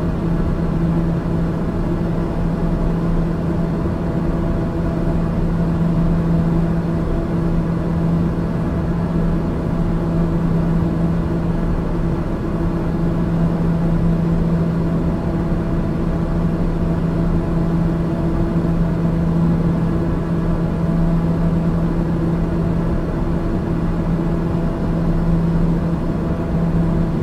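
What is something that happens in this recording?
A jet engine drones steadily inside a cockpit in flight.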